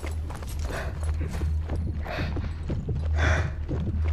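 Footsteps crunch on a stone path.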